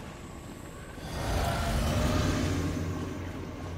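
A magic spell hums and shimmers.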